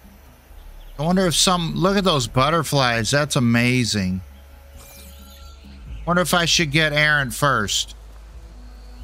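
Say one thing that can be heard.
An older man talks with animation close to a microphone.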